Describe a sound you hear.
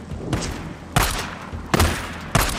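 A handgun fires several shots.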